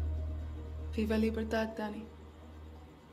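A young woman speaks calmly and quietly, close by.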